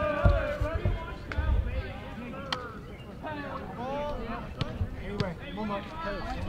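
Young men chatter and call out nearby, outdoors.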